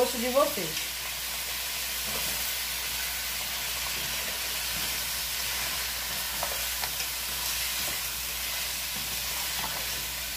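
A wooden spoon stirs shrimp in a pot, scraping against the metal.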